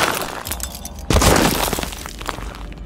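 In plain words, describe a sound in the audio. A heavy body thuds onto hard ground.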